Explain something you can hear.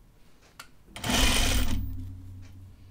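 A sewing machine whirs briefly.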